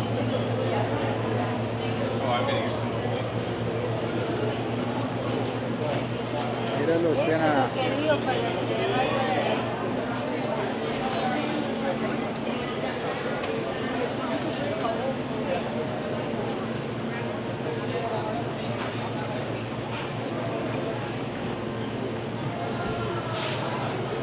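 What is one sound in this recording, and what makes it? A dense crowd chatters all around in a busy indoor hall.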